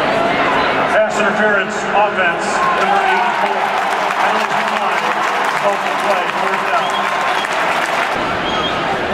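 A man announces a call over a booming stadium loudspeaker.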